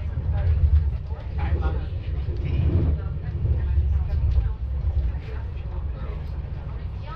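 A passing train rushes by close outside.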